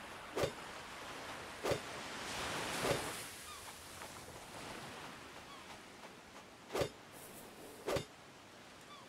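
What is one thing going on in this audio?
An axe chops into wood with sharp, repeated thuds.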